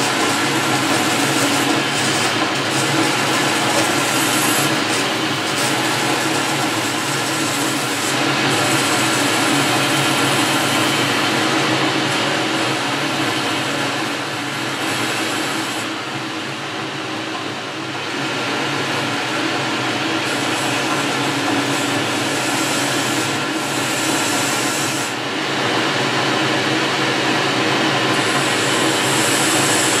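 A lathe spins with a steady mechanical hum.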